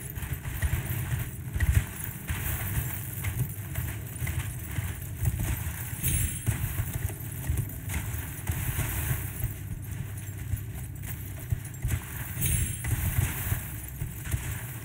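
A horse's hooves thud steadily on snowy ground.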